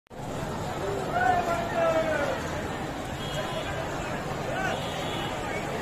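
Voices in a crowd shout and whoop loudly.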